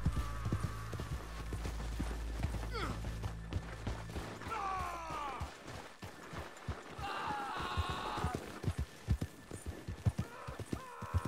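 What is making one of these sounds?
A horse's hooves thud steadily at a gallop.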